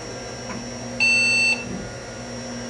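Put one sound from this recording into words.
A vintage portable computer gives a single short beep while booting.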